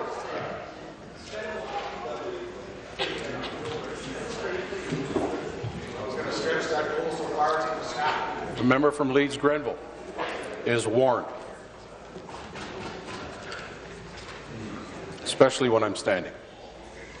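A man speaks formally into a microphone in a large echoing chamber.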